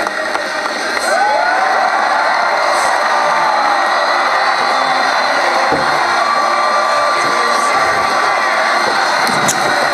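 A large crowd cheers and roars loudly.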